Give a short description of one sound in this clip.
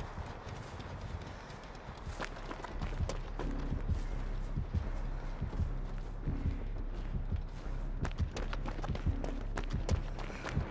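Footsteps rustle through tall grass at a steady pace.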